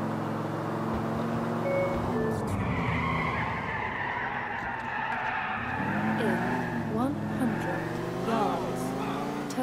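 A car engine roars steadily as it drives fast.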